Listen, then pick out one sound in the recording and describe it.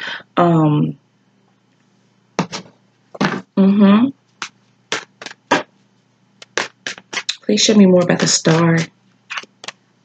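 A woman speaks calmly and close to a microphone, with pauses.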